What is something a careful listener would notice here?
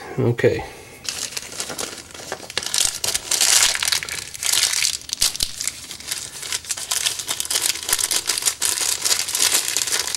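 A plastic bag of small parts crinkles in a hand.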